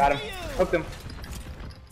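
A video game explosion bursts amid weapon fire.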